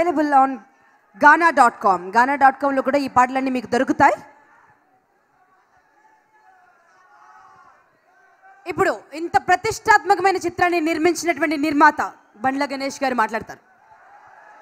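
A woman speaks with animation through loudspeakers.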